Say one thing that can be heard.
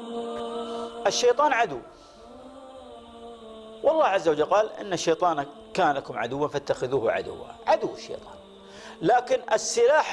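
An elderly man speaks calmly and steadily into a close microphone.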